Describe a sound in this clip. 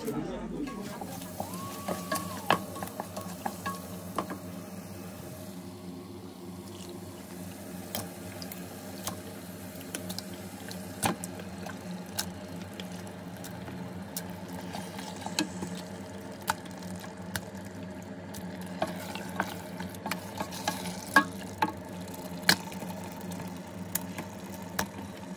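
A wooden spoon scrapes and knocks against a metal pot.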